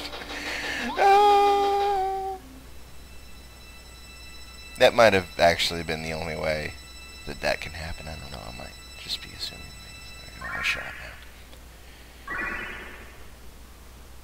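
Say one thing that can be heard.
Short bright video game jingles and chimes play.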